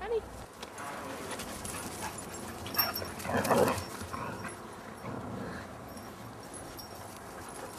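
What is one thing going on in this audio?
Dogs run and scuffle on grass.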